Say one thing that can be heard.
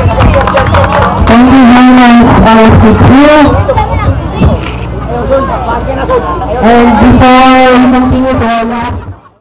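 A group of young men chant loudly together outdoors.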